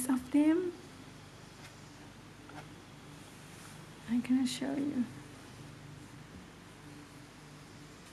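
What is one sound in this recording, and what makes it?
Knitted fabric rustles softly as it is lifted and folded.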